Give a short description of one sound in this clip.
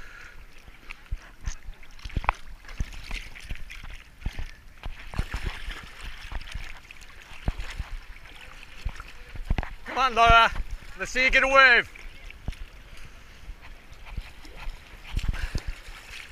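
Hands splash and paddle through water close by.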